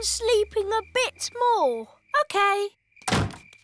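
A woman speaks cheerfully in a cartoon voice.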